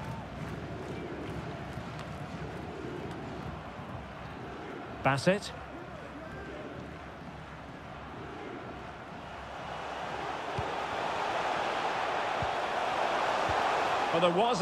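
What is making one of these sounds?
A stadium crowd roars steadily and swells louder toward the end.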